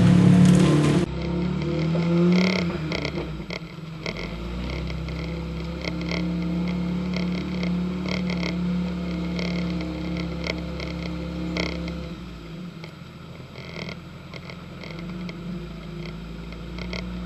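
A truck engine hums steadily from inside the cab.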